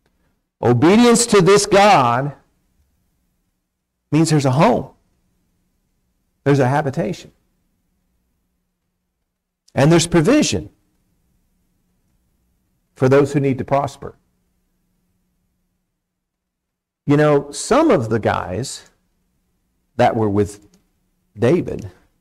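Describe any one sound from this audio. A man speaks slowly and calmly into a microphone, in short phrases with long pauses.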